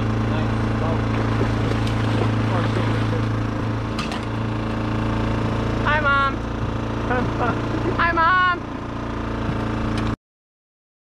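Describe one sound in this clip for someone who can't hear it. A boat's motor hums steadily.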